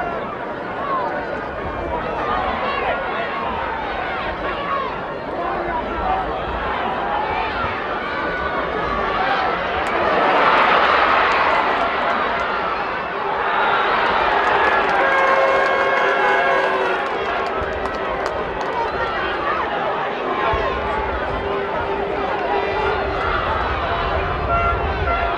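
A large stadium crowd murmurs and chatters outdoors.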